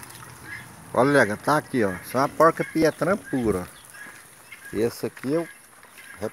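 A pig grunts nearby.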